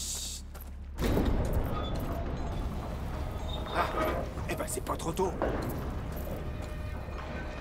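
A heavy cart rumbles over stone.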